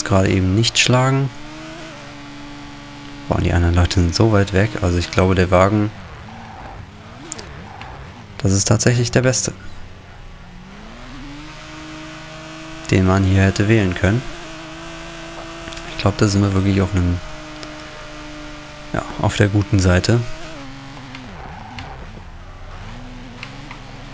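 A racing car engine drones and revs, its pitch rising and falling as it speeds up and slows down.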